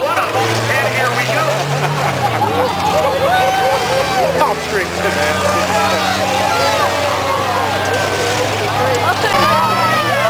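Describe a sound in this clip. Race car engines roar and drone steadily.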